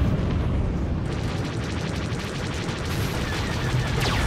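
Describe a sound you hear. Laser cannons fire in rapid bursts.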